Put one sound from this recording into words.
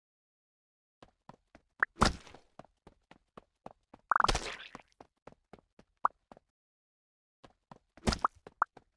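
Short electronic pops sound in quick succession.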